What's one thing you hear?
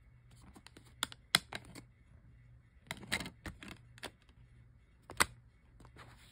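A plastic disc case clicks and snaps as it is handled.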